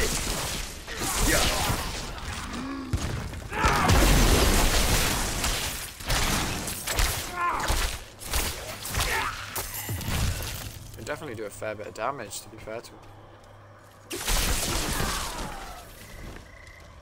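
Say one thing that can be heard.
Magic blasts and bursts of fire crackle and boom.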